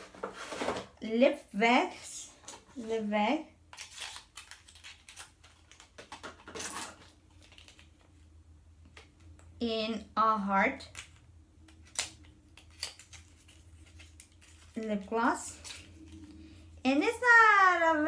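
Small plastic packaging crinkles and clicks in hands.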